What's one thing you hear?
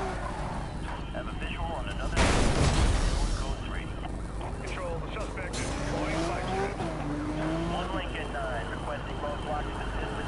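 A sports car engine roars steadily at speed.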